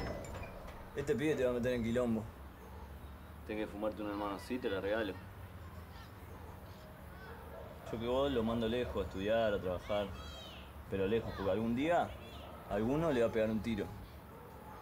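A man speaks calmly and casually nearby.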